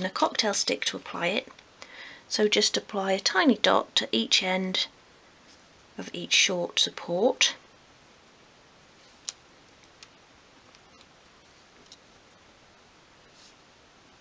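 Thin wooden sticks tap and click together softly.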